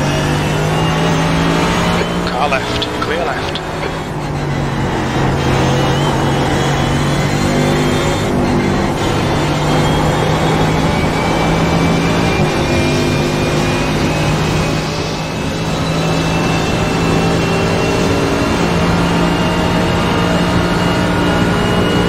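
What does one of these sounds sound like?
A race car engine roars loudly, revving up through the gears.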